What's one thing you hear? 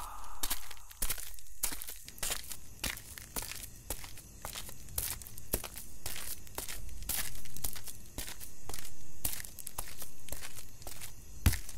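Footsteps crunch on dry ground as a man walks.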